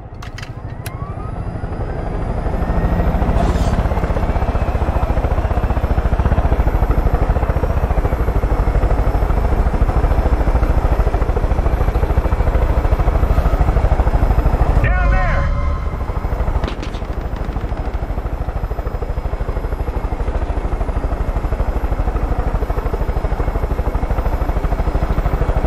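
A helicopter's rotor thumps rapidly and steadily, growing louder as it lifts off.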